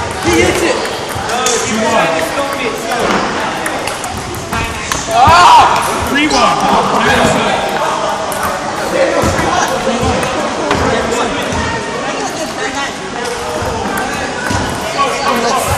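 Teenage boys talk and shout with animation nearby.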